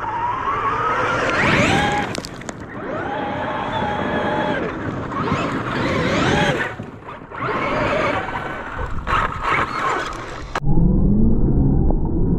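A small electric motor whines and revs as a toy truck races past.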